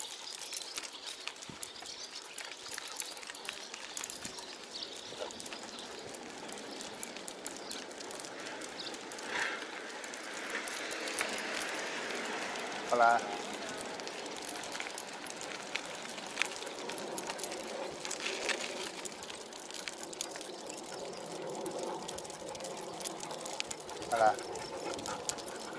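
Wind rushes steadily over the microphone.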